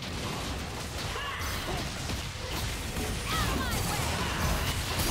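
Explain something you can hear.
Magic spells whoosh and crackle in a fast video game battle.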